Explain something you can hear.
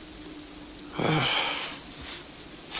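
A man gasps sharply.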